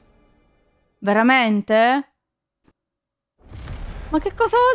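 A young woman speaks with drawn-out, animated exclamations close to a microphone.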